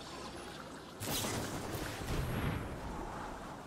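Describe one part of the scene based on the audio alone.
A bright magical whoosh swells up suddenly.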